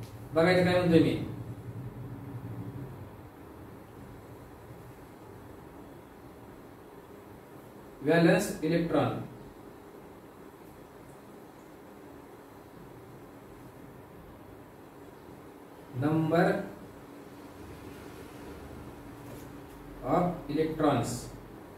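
A man speaks calmly in short phrases, close by, with long pauses between them.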